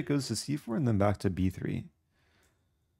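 A young man speaks quickly and with animation into a close microphone.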